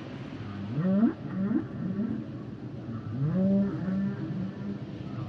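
Whales call underwater with low, rising moans.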